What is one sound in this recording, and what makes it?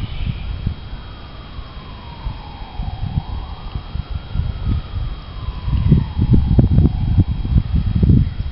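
A dog whines in a long, wavering tone.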